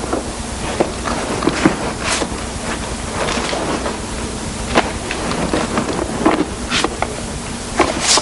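Books knock and rustle as they are handled on a shelf.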